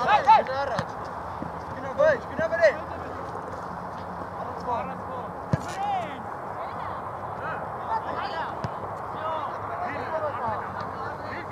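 Players call out faintly across an open field.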